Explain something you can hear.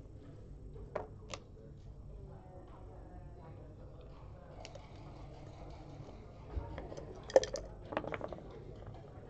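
Game pieces click and clack against a wooden board.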